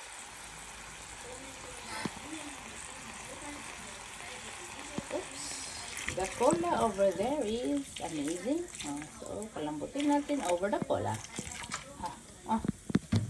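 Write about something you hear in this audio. Food sizzles and bubbles in a hot pan.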